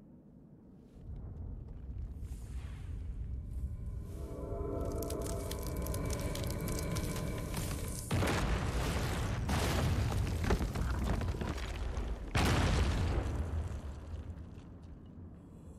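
Crackling energy roars and builds to a loud rumble.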